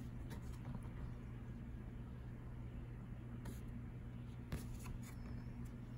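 Stiff cards rustle and tap as a man handles them.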